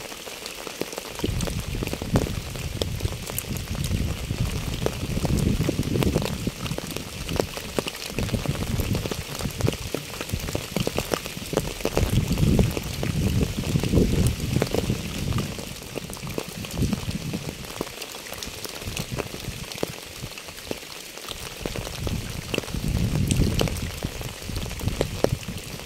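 Rain patters steadily on wet pavement.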